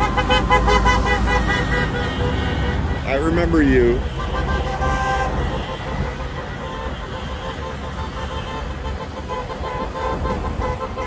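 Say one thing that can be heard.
Vehicles drive past on a busy road with a steady rumble of tyres and engines.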